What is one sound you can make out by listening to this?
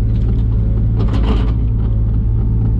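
Soil and stones tumble from a digger's bucket.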